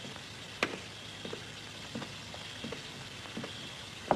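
Footsteps tap slowly across a hard floor.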